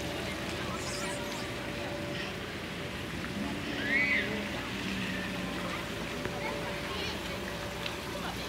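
A crowd murmurs faintly in the distance outdoors.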